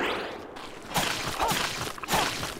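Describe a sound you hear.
Sharp whooshing strikes from a video game ring out in short bursts.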